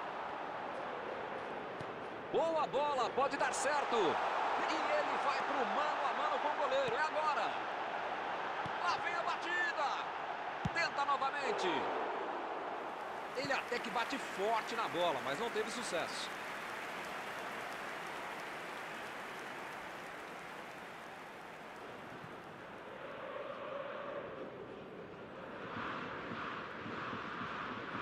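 A large crowd roars steadily in a stadium.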